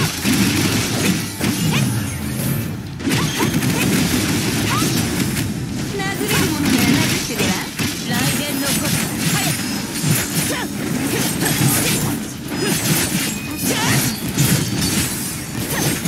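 Sword slashes and energy blasts hit in rapid succession.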